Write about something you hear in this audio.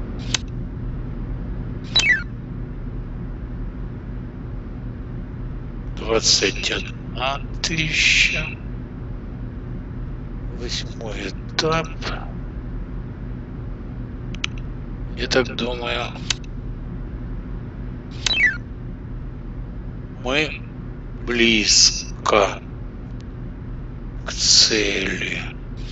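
Game sound effects play as puzzle tiles slide into place.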